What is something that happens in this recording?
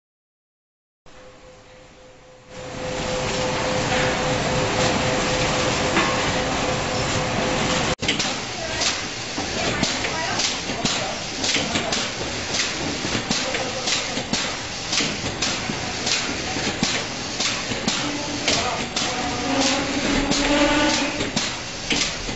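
Packaging machines whir and clatter steadily.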